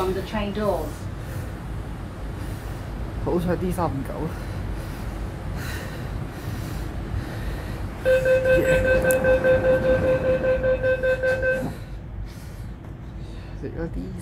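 A train hums and rumbles steadily.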